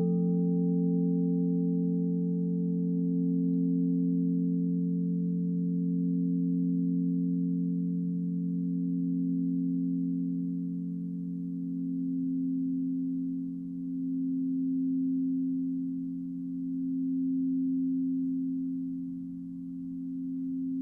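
Crystal singing bowls hum with deep, steady, slowly swelling tones.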